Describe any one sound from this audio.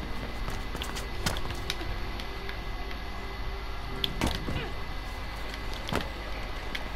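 Footsteps thud and scrape as someone climbs and jumps.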